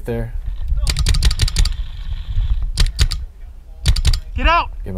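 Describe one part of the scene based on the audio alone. A paintball marker fires a rapid burst of shots.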